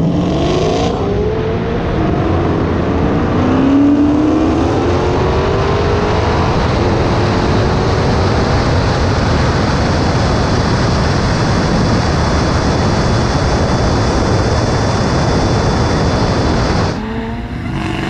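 Wind rushes past a fast-moving car.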